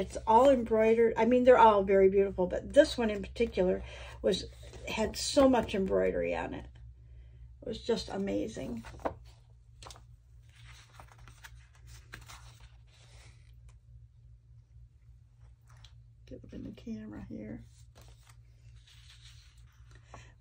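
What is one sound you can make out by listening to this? Sheets of paper rustle and slide as they are handled.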